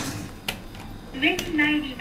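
A button clicks when pressed.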